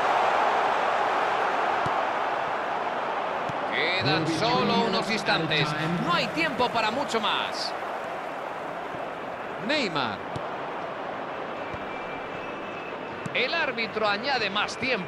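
A stadium crowd roars steadily, loudest at first and slowly easing.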